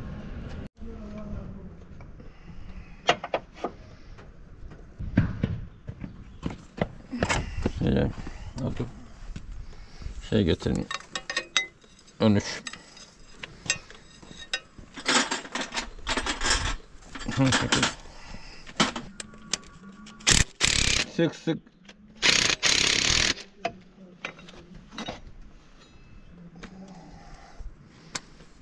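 Metal tools clink and clank against an engine.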